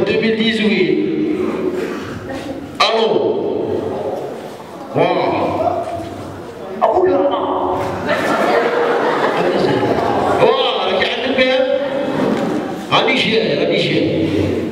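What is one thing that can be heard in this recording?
A man speaks with animation into a microphone, heard through loudspeakers in an echoing hall.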